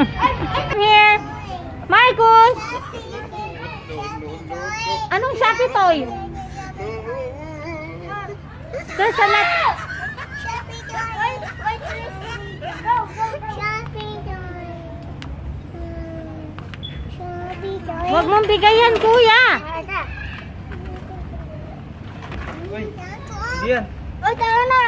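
A small child babbles and squeals close by.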